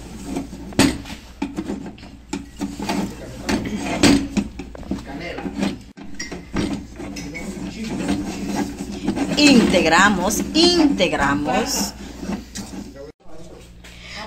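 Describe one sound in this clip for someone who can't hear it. A spatula scrapes and knocks against a pan as crumbly dough is stirred.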